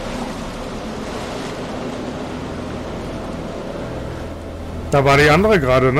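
Water churns and surges loudly.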